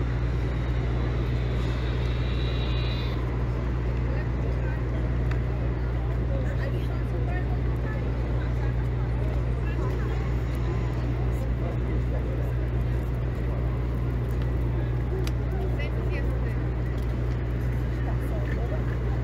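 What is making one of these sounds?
A crowd murmurs outdoors on a busy street.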